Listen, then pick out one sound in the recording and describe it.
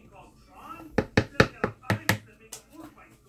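A spoon taps against a plastic container several times.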